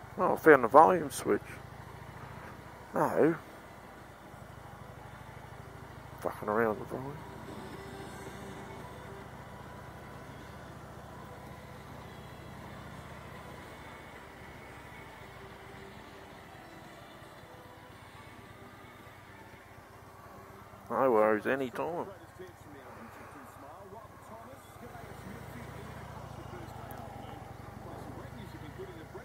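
A motorcycle engine rumbles low and steady.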